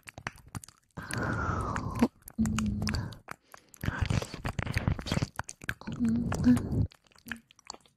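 Something rubs and scratches right against a microphone, loud and close.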